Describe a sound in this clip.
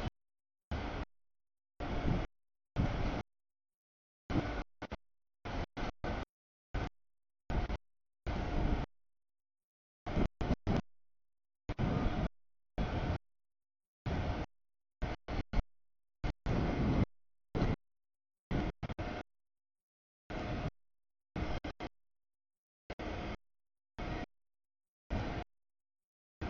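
A long freight train rumbles and clatters past on the rails.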